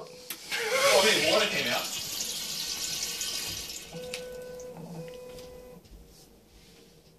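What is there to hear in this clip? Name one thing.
Water swirls and gurgles down a toilet bowl.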